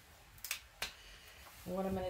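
A plastic bottle cap clicks open.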